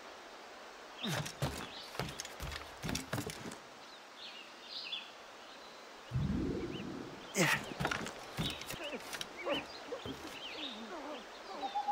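Footsteps thud and creak on a wooden roof.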